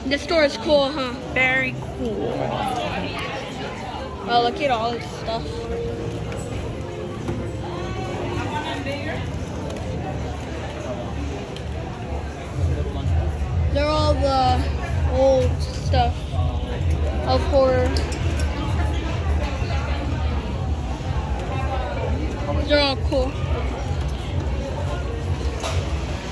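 A crowd murmurs in a busy indoor space.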